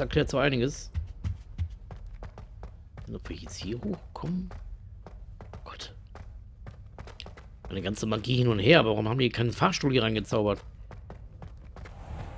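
Footsteps climb stone stairs at a steady pace.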